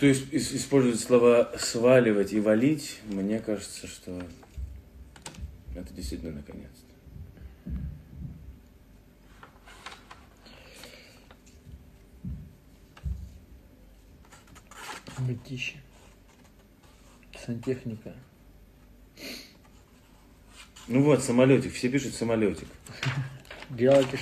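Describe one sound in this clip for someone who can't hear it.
Paper rustles as a man folds it.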